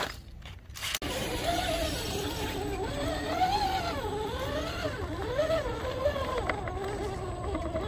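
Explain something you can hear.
A small electric motor whines, rising and falling in pitch as a toy truck crawls over rock.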